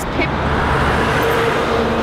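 A truck roars past.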